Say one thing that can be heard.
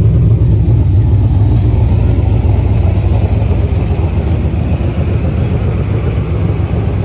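A car engine idles with a deep, loud rumble close by.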